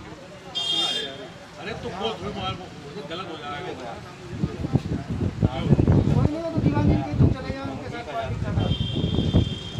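A middle-aged man talks nearby.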